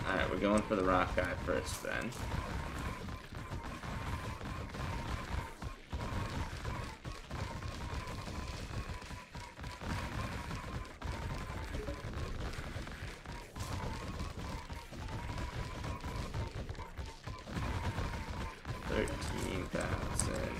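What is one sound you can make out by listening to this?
Game combat effects clash and hum steadily throughout.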